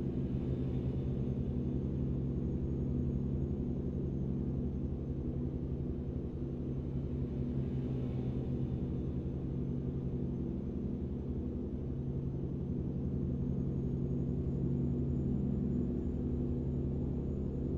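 A truck engine hums steadily at a low, even pitch.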